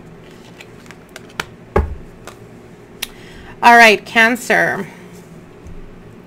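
Playing cards are laid softly down on a cloth.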